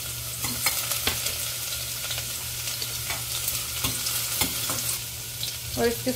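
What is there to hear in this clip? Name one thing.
A metal spoon scrapes and taps against a metal pot.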